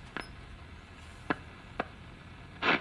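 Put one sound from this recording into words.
A knob on a radio clicks as it turns.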